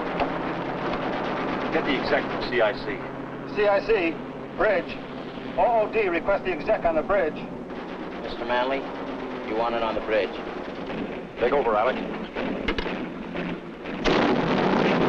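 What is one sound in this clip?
Men speak tensely, close by.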